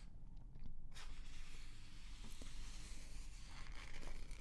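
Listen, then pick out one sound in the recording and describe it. A magazine page rustles as it is turned.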